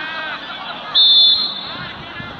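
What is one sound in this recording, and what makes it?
A referee's whistle blows a short sharp blast.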